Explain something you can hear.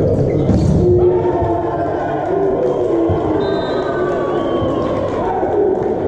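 Volleyball players call out to each other on court in a large echoing hall.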